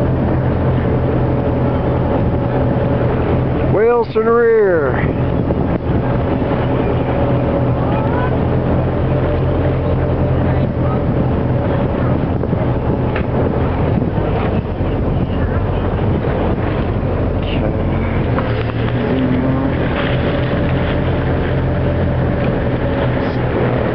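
Choppy waves splash and lap nearby.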